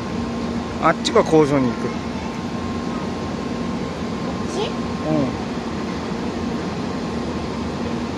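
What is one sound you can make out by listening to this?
A high-speed train glides slowly past with a steady low hum.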